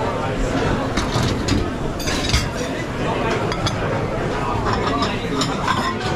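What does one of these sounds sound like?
A dishwasher machine hums and rumbles loudly.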